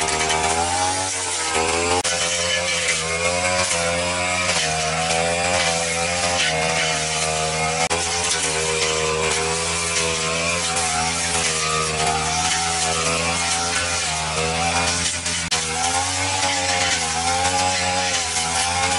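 A petrol brush cutter engine whines loudly, its pitch rising and falling as it revs.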